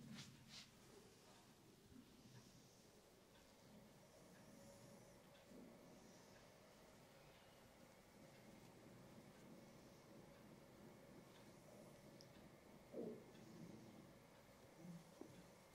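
A woman's fingers rub and press on a man's scalp.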